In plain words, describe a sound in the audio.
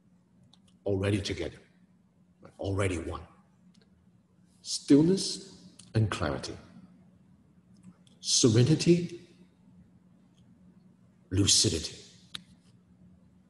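A man speaks calmly, close to a microphone, in short phrases with pauses.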